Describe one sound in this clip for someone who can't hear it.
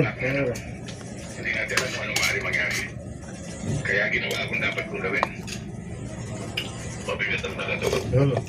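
A fork scrapes and clinks against a plastic bowl.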